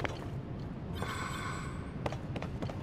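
A shimmering magical tone rings briefly.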